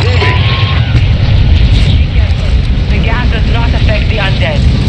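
Wind rushes loudly past during a skydive.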